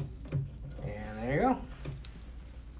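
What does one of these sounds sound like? A drawer slides on its metal runners.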